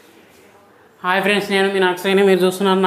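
A young man speaks loudly and clearly close by.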